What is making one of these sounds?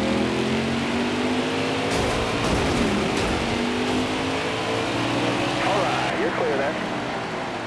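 Race car engines roar loudly and steadily.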